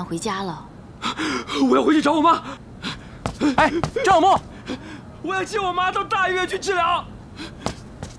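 A young man speaks urgently nearby.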